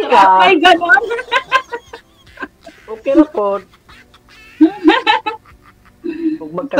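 A woman laughs over an online call.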